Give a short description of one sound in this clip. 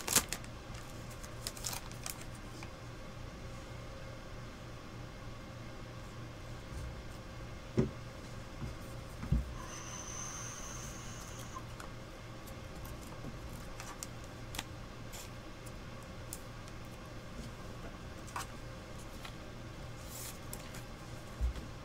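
Cards shuffle and click against each other.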